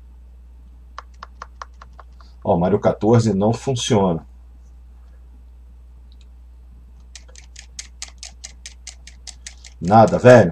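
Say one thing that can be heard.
Buttons on a handheld game console click rapidly.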